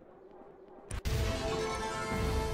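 A bright magical chime swells up loudly.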